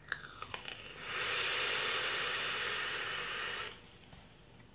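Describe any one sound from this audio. A man draws in hard through a vape with a hiss.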